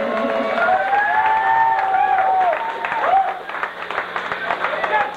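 Drums and cymbals crash and clatter.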